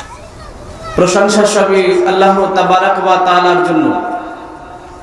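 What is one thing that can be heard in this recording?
A man holds a long sung tone through a microphone and loudspeaker.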